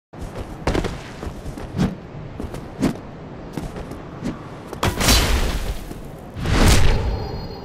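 Magic blasts whoosh and burst in a game fight.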